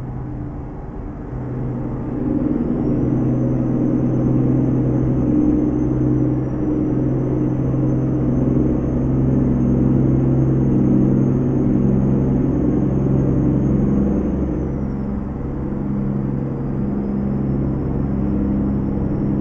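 Tyres rumble on a road.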